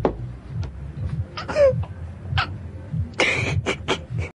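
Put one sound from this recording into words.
A teenage girl sobs and whimpers, close by.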